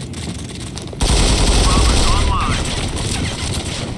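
A rifle fires loudly.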